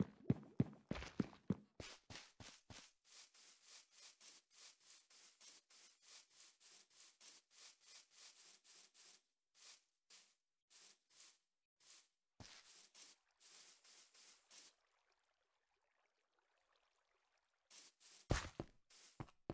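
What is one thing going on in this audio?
Footsteps tread quickly over grass and stone in a game.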